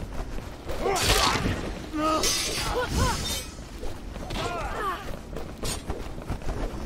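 A sword swishes and strikes with sharp hits.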